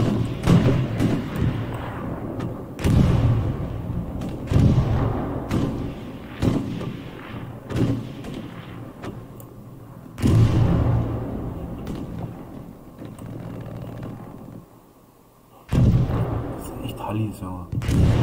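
A rifle fires loud shots that echo away.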